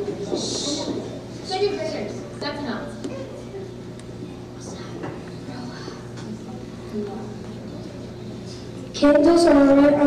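Children chatter softly in an echoing hall.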